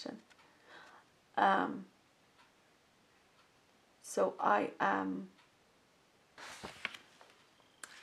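Paper rustles as a newspaper is handled.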